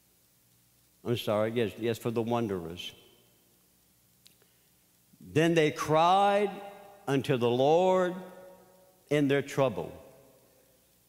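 An elderly man speaks slowly and with emphasis into a microphone, with pauses between phrases.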